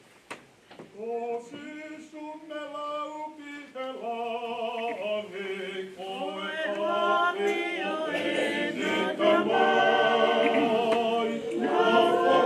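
A group of men and women sings together slowly.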